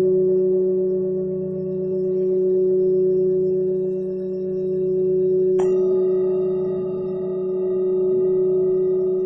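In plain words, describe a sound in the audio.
A steady low electronic hum drones and gently swells.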